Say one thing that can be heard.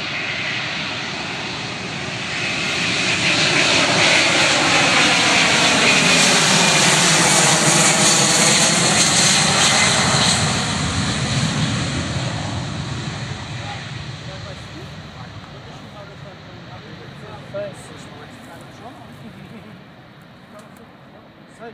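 A wide-body trijet airliner roars at takeoff thrust as it passes and fades into the distance.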